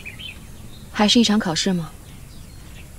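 A young woman asks a short question calmly, close by.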